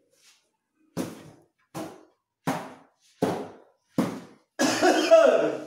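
A wooden panel knocks sharply against a cabinet, several times in a row.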